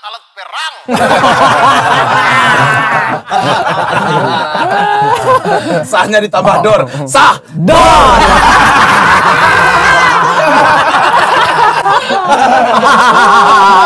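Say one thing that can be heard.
Several men talk and laugh together.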